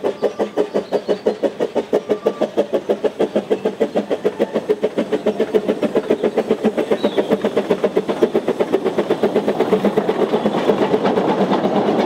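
A small steam locomotive chuffs rapidly as it approaches.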